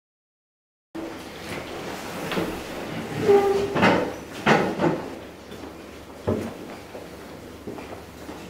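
Footsteps sound on a hard floor as several men walk into a room.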